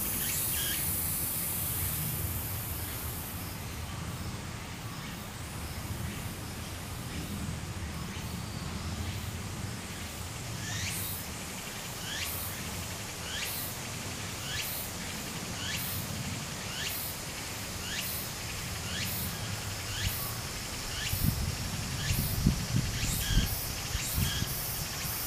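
Shallow water trickles steadily over a stony streambed outdoors.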